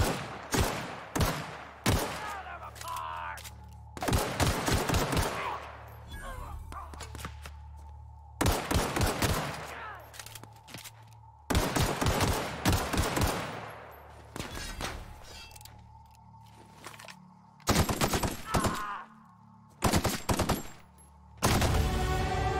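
Guns fire in loud bursts of shots.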